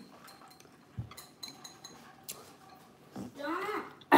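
A young woman chews and smacks her lips while eating.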